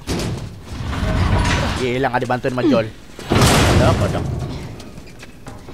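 A heavy metal locker scrapes and topples over.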